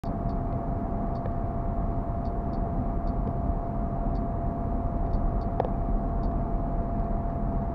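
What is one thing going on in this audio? A car engine hums steadily as tyres roll over a road, heard from inside the car.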